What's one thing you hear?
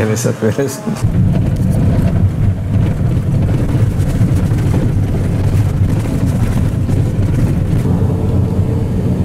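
A vehicle's engine rumbles steadily while driving.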